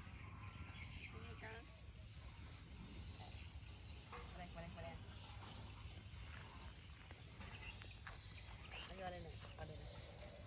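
A young woman speaks softly nearby.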